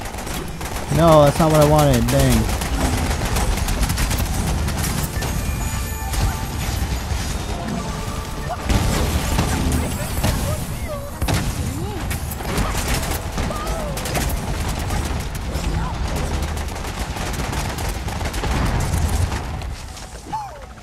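Gunfire and explosions from a game crackle and boom throughout.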